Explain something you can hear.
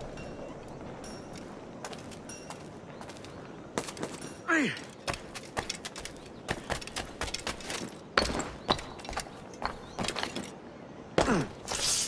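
Footsteps patter quickly across a rooftop.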